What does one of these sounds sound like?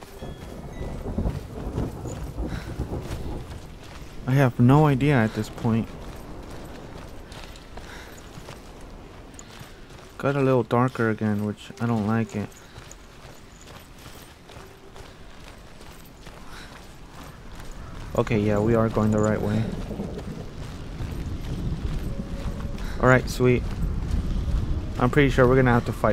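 Footsteps crunch on a dirt and gravel path.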